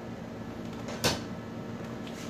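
A circuit board is set down on a sheet-metal panel with a knock.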